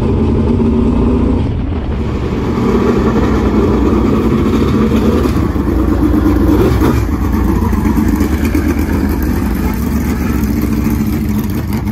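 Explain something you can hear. A race car engine rumbles loudly and revs.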